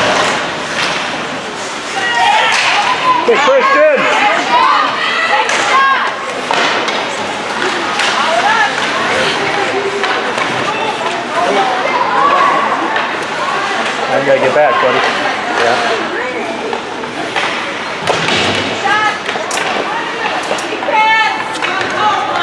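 A crowd of spectators cheers and shouts in a large echoing rink.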